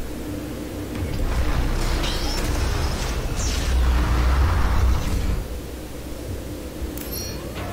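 A low mechanical rumble drones steadily, swelling louder for a few seconds before settling back.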